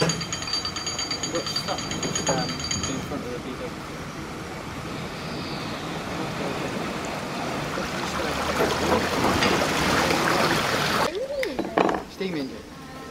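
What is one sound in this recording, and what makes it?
Adult men and women chat casually nearby outdoors.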